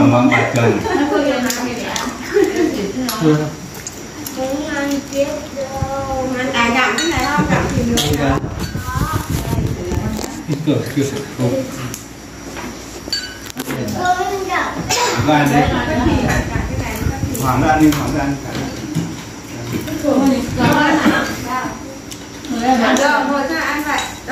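Several men talk and laugh close by.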